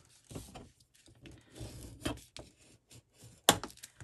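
A bone folder scrapes along a paper crease.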